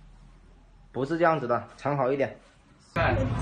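A woman speaks sharply close by.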